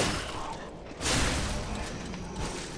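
A metal blade clangs against metal with a burst of sparks.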